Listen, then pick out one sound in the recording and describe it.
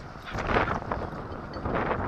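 A dog pants heavily while running.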